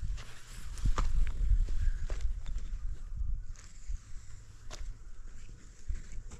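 A long wooden pole scrapes and knocks against a block wall.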